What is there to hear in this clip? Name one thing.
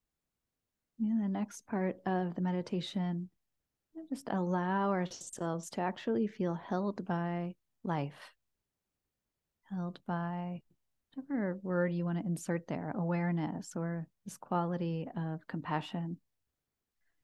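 A woman speaks softly and calmly close to a microphone.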